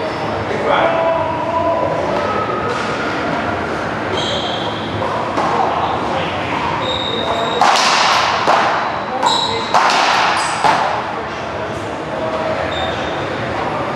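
Sneakers squeak on a hard floor.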